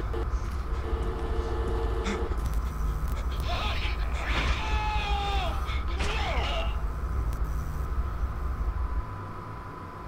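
A loud low rumble and static hiss crackle.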